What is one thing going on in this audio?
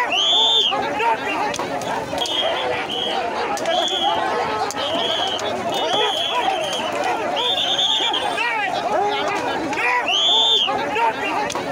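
Several voices cry out in high, loud calls.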